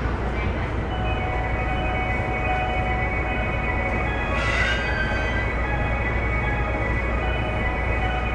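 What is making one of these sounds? Train brakes squeal as the train slows to a stop.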